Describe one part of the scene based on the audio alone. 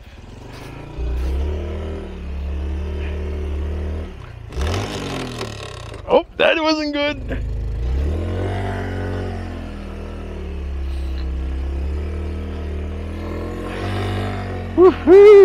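A small motorcycle engine idles and revs unevenly close by.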